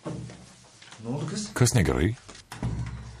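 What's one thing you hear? A young man speaks nearby with animation.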